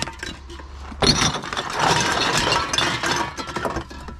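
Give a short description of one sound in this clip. Empty cans and plastic bottles clink and crunch as a hand rummages through them.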